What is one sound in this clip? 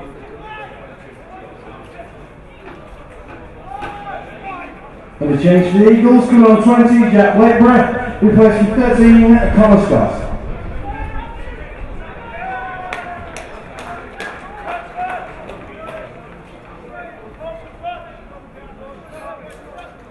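Spectators chatter and call out at an outdoor match.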